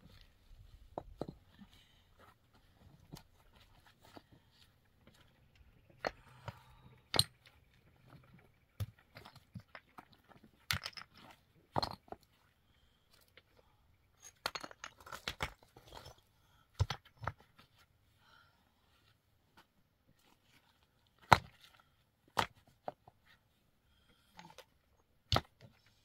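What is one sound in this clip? Stones clack and knock against each other as they are set in place.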